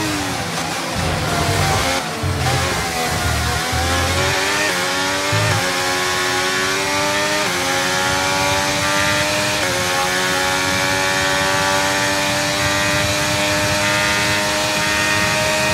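A racing car engine revs high and shifts up through the gears.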